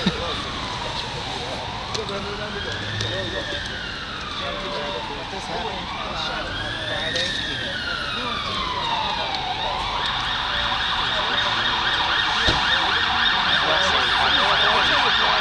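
A middle-aged man talks on a phone nearby, close up.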